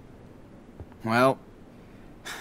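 A boy speaks briefly nearby.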